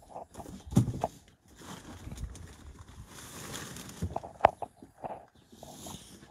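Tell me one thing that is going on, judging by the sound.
Dry debris crunches as it is pulled out by hand.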